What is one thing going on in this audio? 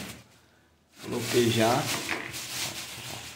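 Clumps of damp soil tumble into a plastic bucket.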